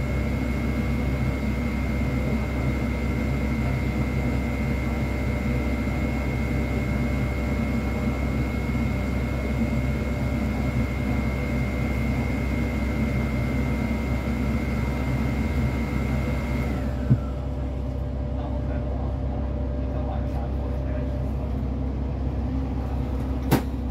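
A bus engine idles with a steady low rumble, heard from inside the bus.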